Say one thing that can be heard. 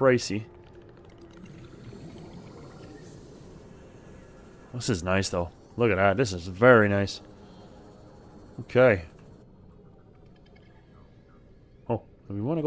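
A small submarine's motor hums softly underwater.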